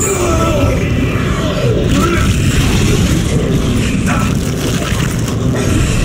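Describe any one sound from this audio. A creature snarls and growls during a struggle.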